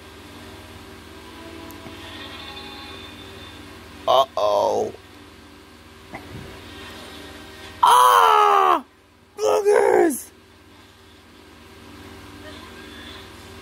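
A cartoon soundtrack plays through a television loudspeaker, with loud, sudden bursts.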